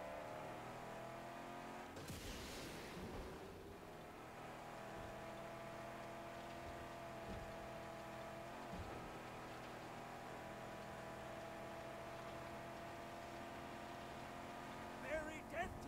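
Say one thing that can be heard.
A car engine drones steadily.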